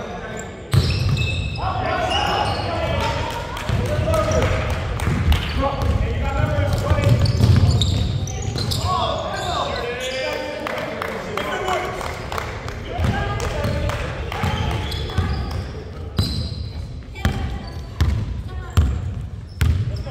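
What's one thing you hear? A basketball bounces on the floor with echoing thuds.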